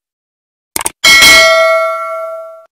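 A bell chimes loudly and slowly rings out.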